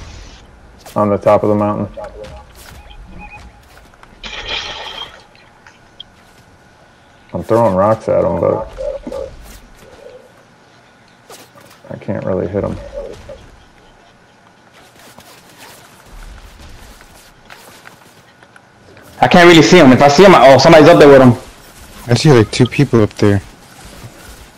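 A man talks with animation, close to a microphone.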